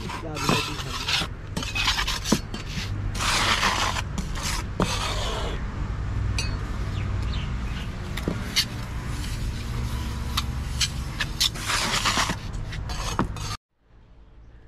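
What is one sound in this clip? A trowel scrapes and slaps wet cement.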